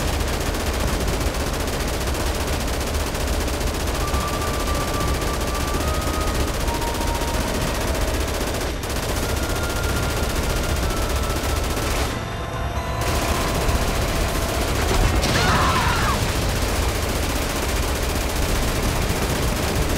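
Explosions boom as shells hit a tank.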